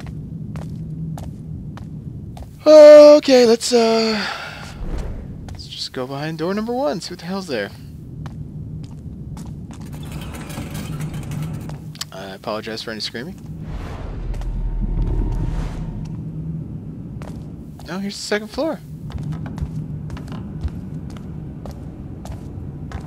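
Footsteps walk across a hard tiled floor.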